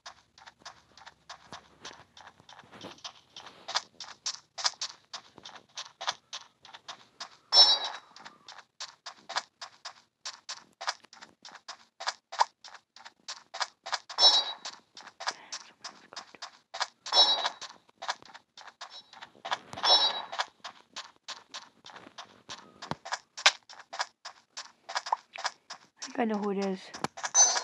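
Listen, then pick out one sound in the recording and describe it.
Quick footsteps tap steadily on a hard floor.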